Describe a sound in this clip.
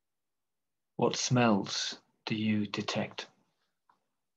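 A middle-aged man speaks briefly and calmly over an online call.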